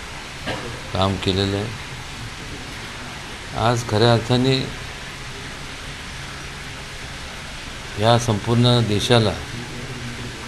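A middle-aged man speaks calmly into microphones in short bursts, with pauses between.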